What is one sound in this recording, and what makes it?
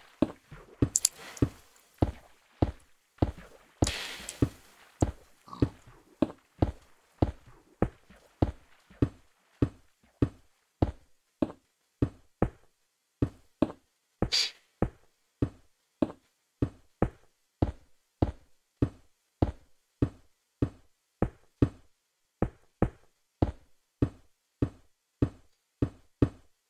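Stone blocks are struck and break with sharp cracks in a quick, steady rhythm.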